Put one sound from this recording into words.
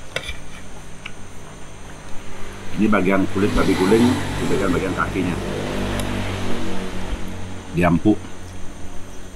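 A metal spoon and fork scrape and clink on a plate.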